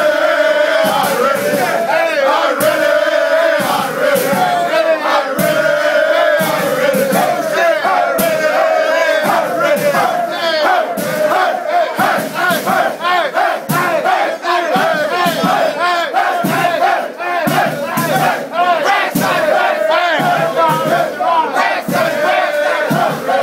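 A crowd of young men shouts and chants loudly in a close, echoing room.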